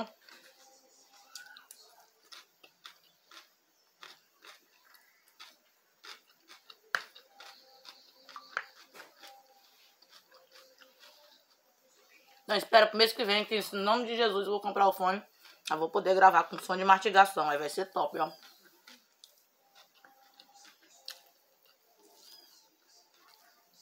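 A fork clinks and scrapes on a plate.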